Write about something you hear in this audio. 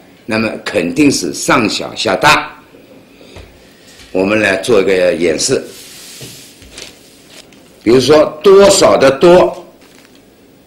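A middle-aged man speaks calmly into a microphone, explaining.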